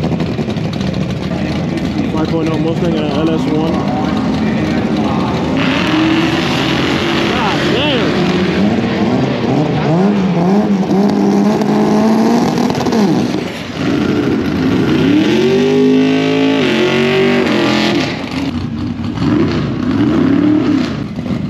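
Racing engines roar and rev loudly nearby.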